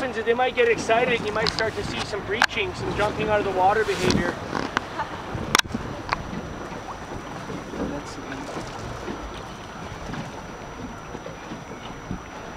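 Small waves slap and splash nearby.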